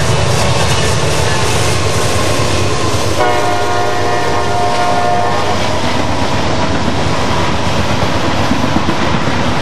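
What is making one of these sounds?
Intermodal freight cars clatter over the rails.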